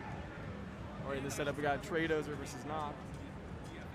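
A man talks loudly nearby.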